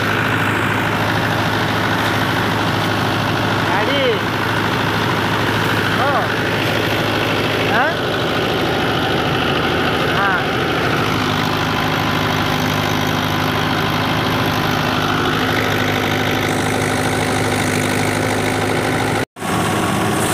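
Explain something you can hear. A tractor engine runs steadily nearby.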